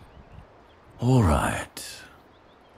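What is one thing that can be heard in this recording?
A young man exclaims loudly, close to a microphone.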